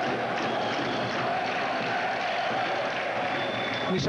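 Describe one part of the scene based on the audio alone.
A basketball thuds on a wooden floor as a player dribbles.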